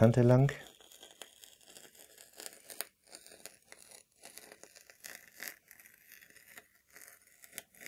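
A rotary blade cuts through crinkly fabric.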